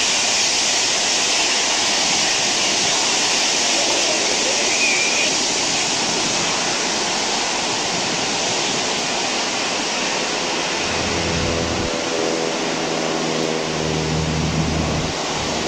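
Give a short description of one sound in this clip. Jet engines whine loudly and steadily as an airliner taxis close by.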